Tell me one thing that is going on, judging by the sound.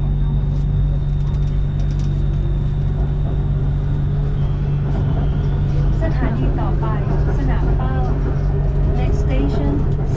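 A second train rushes past close by.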